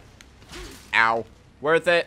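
A blade strikes an enemy.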